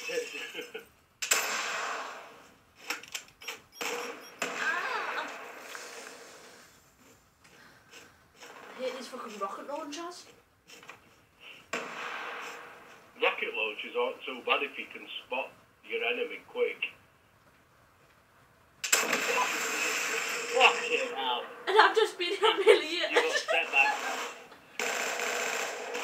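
Video game gunfire rattles in quick bursts from a television speaker.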